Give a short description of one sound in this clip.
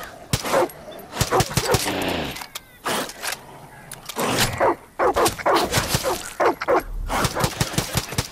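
An animal snarls and growls close by.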